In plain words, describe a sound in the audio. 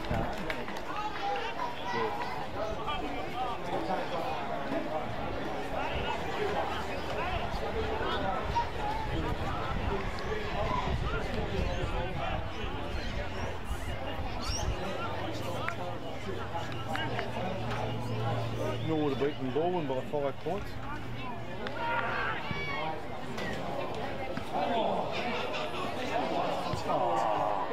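Young men call out to each other across an open outdoor field.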